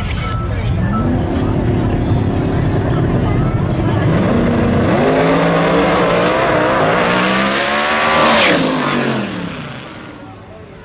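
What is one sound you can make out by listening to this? Race car engines roar and climb in pitch as the cars speed away.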